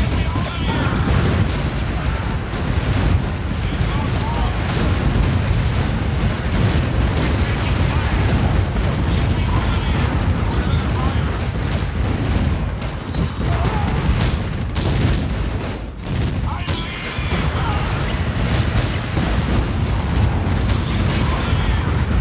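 Guns fire in rapid bursts.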